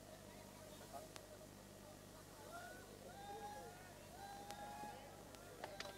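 A crowd of men chatters and calls out nearby, outdoors.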